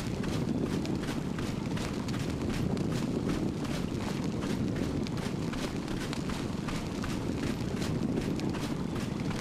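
Quick footsteps thud along the ground.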